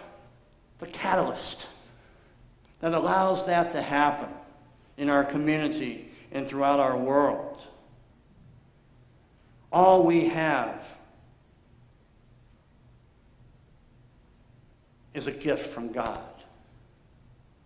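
A middle-aged man speaks with animation in a large echoing room, with pauses between phrases.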